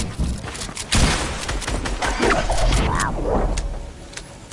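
Rapid gunfire crackles.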